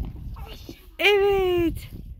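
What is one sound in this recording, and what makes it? A young child shouts loudly.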